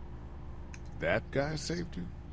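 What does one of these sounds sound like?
A man speaks in a low, worried voice.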